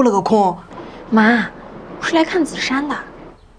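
A young woman answers on a phone, speaking firmly.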